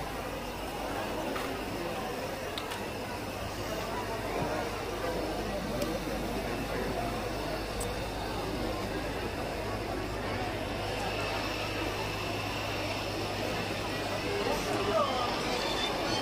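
A crowd of people murmurs and chatters all around, outdoors.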